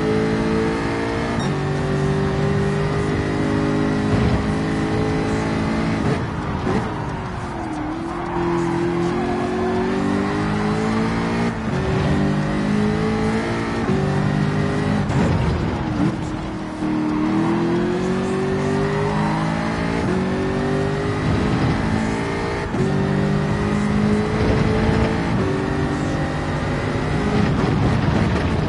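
A racing car engine roars loudly, climbing in pitch and dropping back as it shifts gears and slows for corners.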